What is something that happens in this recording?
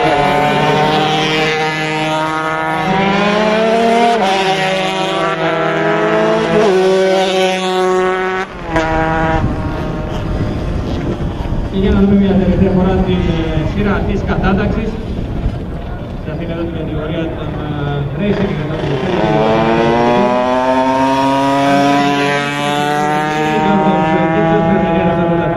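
Racing motorcycle engines scream at high revs, rising and falling as the riders shift gears.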